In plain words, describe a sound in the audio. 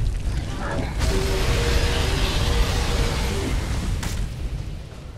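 Fire roars in a loud rush.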